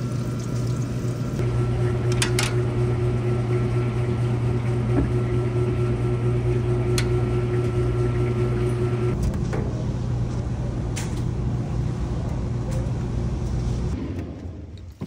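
Laundry machines hum steadily nearby.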